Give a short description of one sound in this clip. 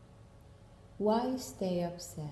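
A young woman speaks close to the microphone.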